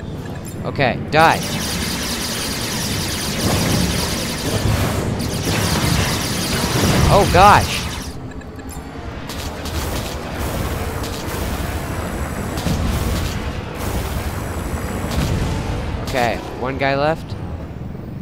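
A laser beam zaps with a whooshing, rising whine.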